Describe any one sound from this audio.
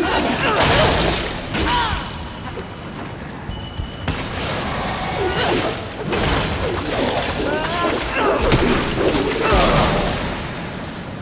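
Weapons clash and slash with loud impacts.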